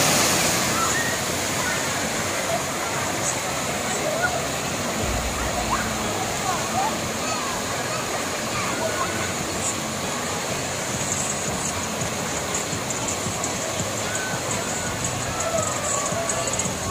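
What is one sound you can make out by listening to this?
A crowd of children and adults shout and call out playfully outdoors.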